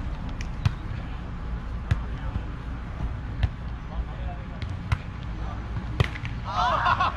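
A volleyball is struck with sharp thuds.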